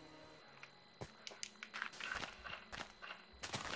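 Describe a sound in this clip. Dirt crunches in quick, light knocks as blocks are dug away.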